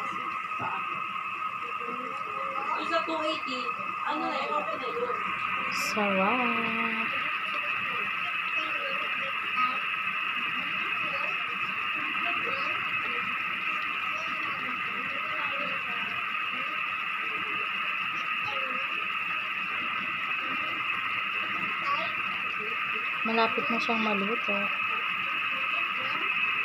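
Sauce bubbles and sizzles steadily in a pan.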